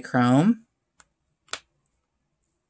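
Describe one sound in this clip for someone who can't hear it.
A small pan clicks softly into a plastic case.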